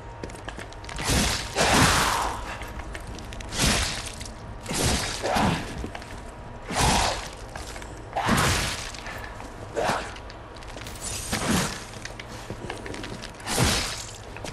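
Heavy weapon blows whoosh and strike again and again in a fight.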